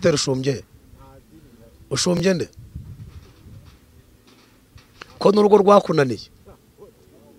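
A man speaks into a microphone close up, in short bursts with pauses.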